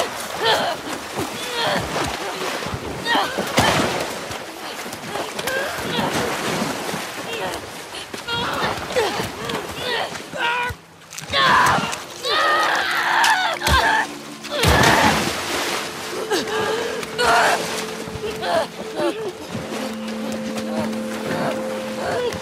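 A young man gasps and chokes, close by.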